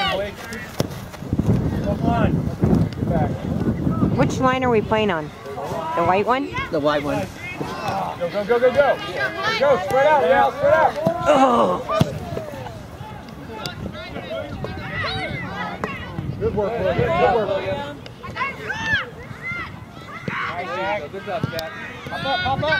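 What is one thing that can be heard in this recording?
Young players shout and call out across an open field outdoors.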